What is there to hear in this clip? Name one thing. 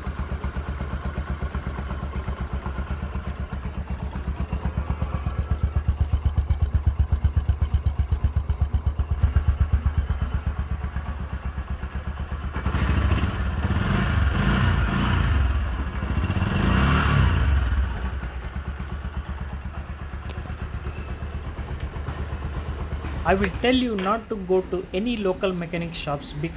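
A motorcycle engine idles with a steady, rapid putter.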